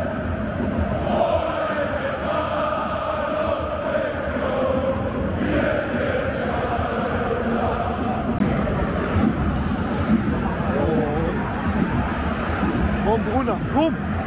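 Crowd noise roars steadily in a vast open stadium.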